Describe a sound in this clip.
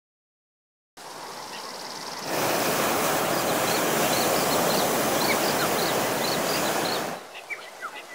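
Wind rushes loudly past.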